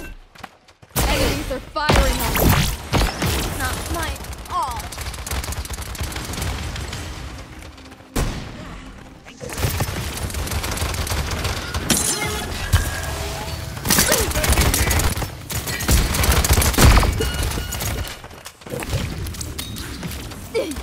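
Game gunshots fire in rapid bursts.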